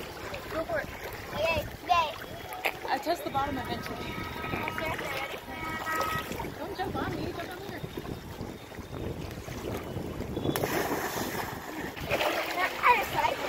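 A woman talks cheerfully from the water nearby.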